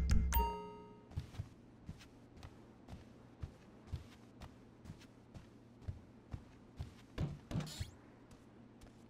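Footsteps tap steadily across a floor.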